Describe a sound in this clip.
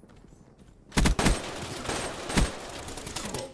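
Gunshots fire in short, loud bursts with echoing tails.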